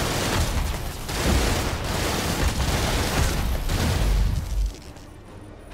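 Electric blasts crackle and burst.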